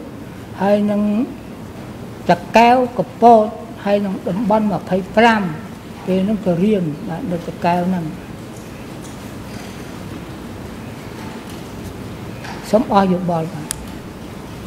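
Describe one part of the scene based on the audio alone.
An elderly man speaks haltingly into a microphone.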